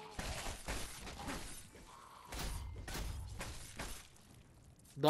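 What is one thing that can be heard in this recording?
Heavy blows thud and squelch against flesh.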